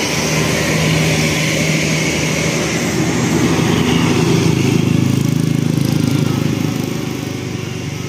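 A bus engine rumbles loudly as the bus drives past close by.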